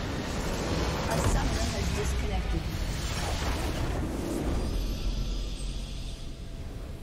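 A huge structure explodes with a loud crashing blast.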